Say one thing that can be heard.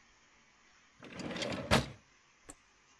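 A wooden drawer slides open.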